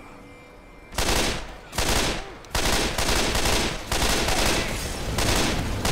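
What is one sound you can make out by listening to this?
A rifle fires in long rapid bursts.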